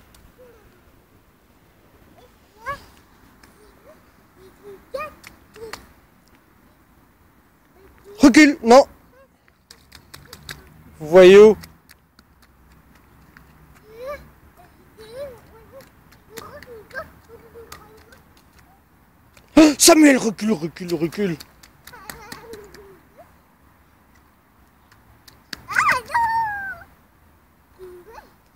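A toddler's shoes splash and patter in shallow puddles.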